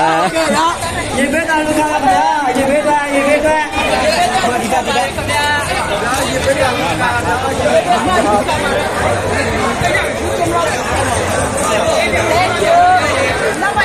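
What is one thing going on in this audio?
A crowd chatters and calls out all around outdoors.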